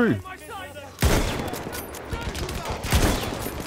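A rifle fires with a loud crack.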